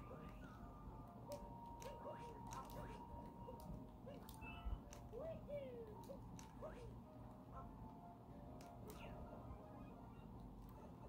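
Short springy electronic sound effects chirp and bounce through a television speaker.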